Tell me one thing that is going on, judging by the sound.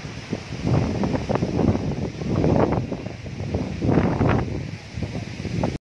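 Strong gusty wind roars and buffets loudly outdoors.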